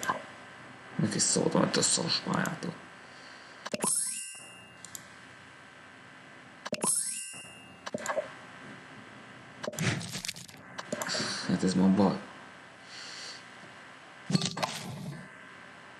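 A young man talks casually into a microphone close by.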